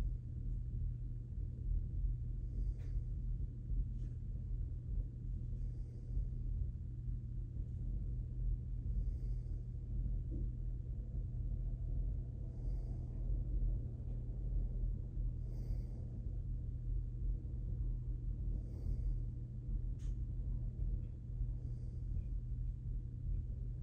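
A man breathes slowly and deeply in his sleep, close by.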